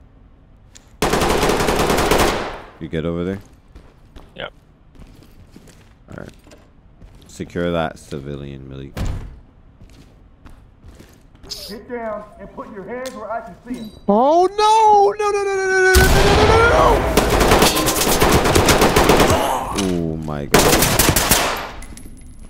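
Gunfire bursts loudly and rapidly.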